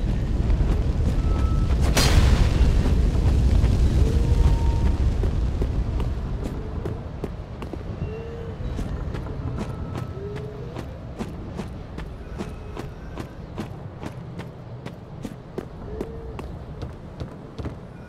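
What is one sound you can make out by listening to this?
Footsteps clatter steadily on stone.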